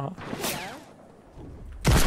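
A gun fires a quick shot.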